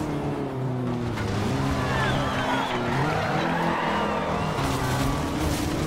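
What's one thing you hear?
Tyres screech while a car slides through a bend.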